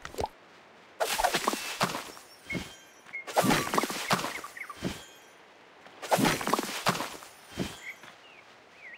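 Short bursts of bright, clattering game sound effects play.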